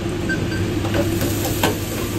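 Metal tongs clink against a fryer basket.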